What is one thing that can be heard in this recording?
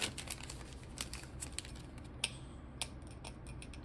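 A foil wrapper crinkles as cards are pulled out.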